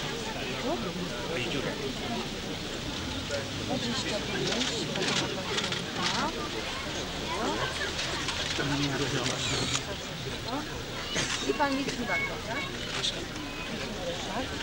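Men talk with each other nearby.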